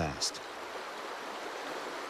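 A paddle splashes in the water.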